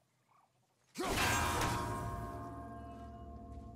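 A metal bell is struck and rings out loudly, slowly fading.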